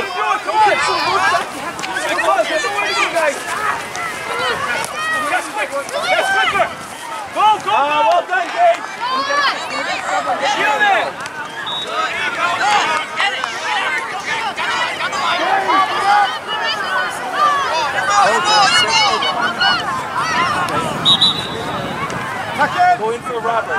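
A crowd of children and adults shouts and calls out outdoors.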